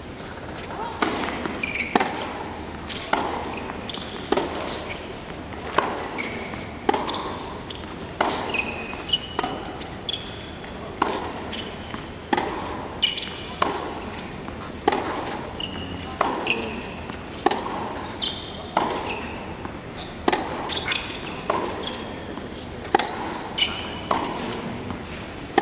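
A tennis ball is struck back and forth with sharp pops, echoing in a large hall.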